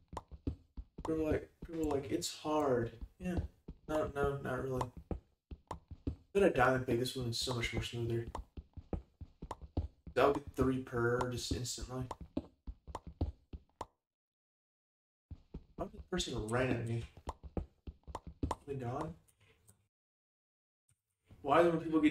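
A young man talks with animation close to a microphone, pausing now and then.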